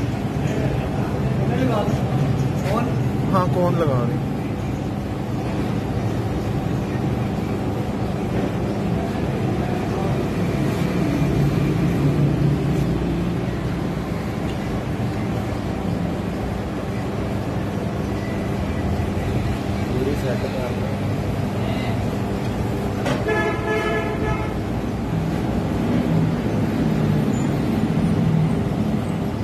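A machine hums steadily throughout.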